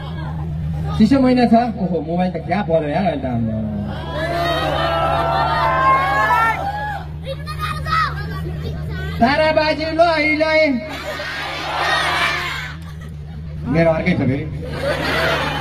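A young man talks with animation into a microphone, heard through loudspeakers.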